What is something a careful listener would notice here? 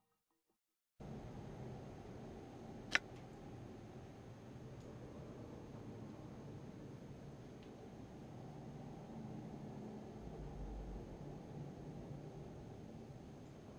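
A low, murky game ambience rumbles steadily.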